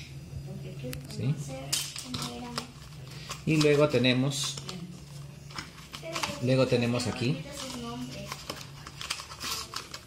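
A cardboard box scrapes and rustles as it is handled.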